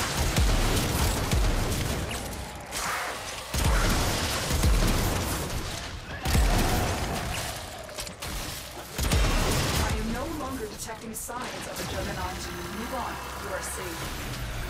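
Guns fire rapidly with heavy booming blasts.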